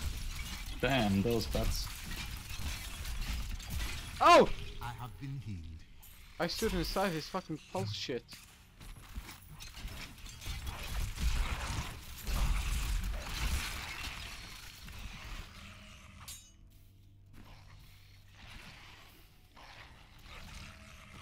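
Game spell effects and combat sounds crash and whoosh.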